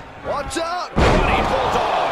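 A body thuds hard onto a mat.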